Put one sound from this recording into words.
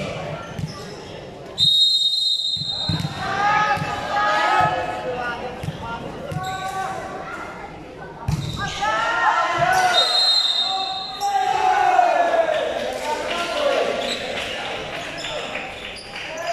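A crowd of young people shouts and cheers in a large echoing hall.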